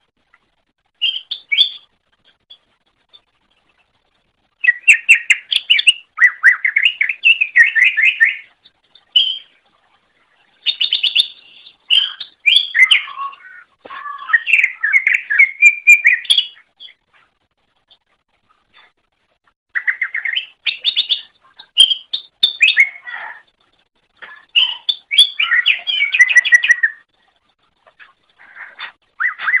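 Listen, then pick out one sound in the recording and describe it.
A small bird sings a fast, chattering song in bursts with short pauses.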